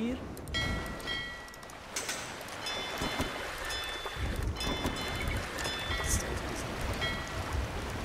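Cannons boom as warships exchange fire at sea.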